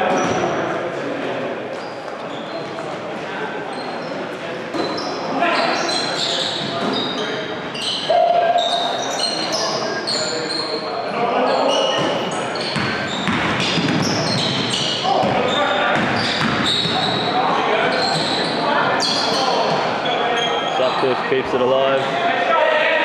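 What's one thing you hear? Young men shout and call to each other in a large echoing gym.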